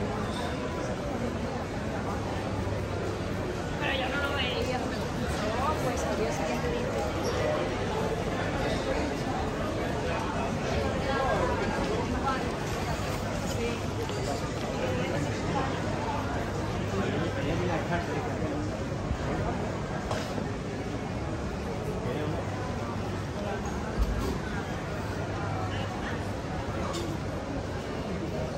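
A crowd of people chatters all around on a busy street.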